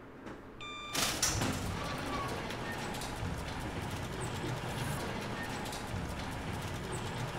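A metal shutter rattles and grinds as it rolls up.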